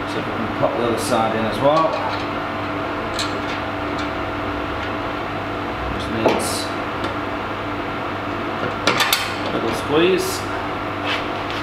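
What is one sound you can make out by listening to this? Metal fittings clank and click against a steel keg.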